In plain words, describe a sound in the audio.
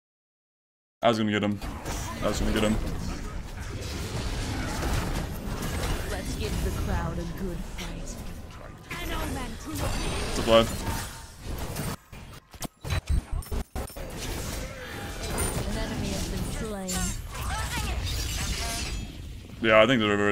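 Game combat effects crash and whoosh in quick bursts.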